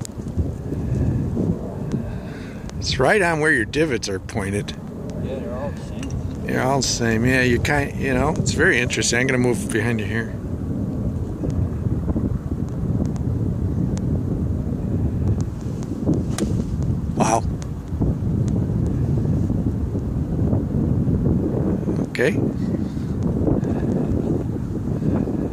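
Wind blows steadily across open ground.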